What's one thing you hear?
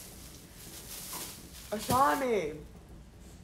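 A plastic bag crinkles as it is set down.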